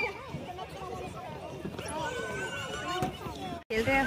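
A young girl laughs.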